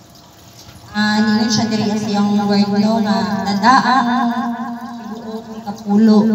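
A woman sings loudly into a microphone over a loudspeaker.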